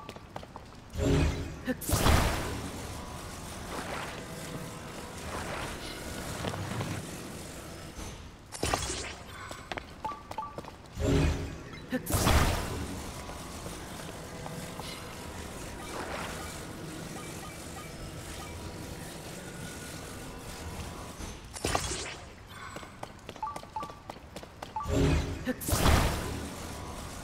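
A loud magical whoosh swells and fades, several times.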